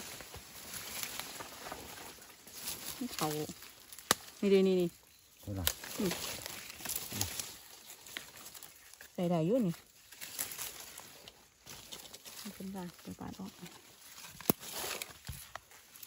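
Dry leaves rustle as hands dig in the ground.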